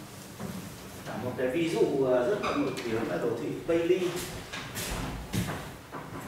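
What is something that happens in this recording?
A man speaks calmly in a room with some echo.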